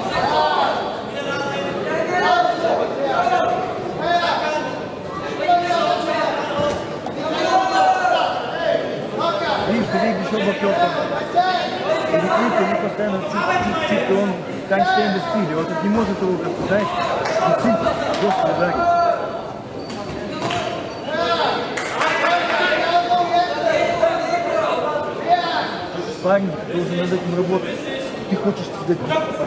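A man speaks steadily through a loudspeaker in a large echoing hall.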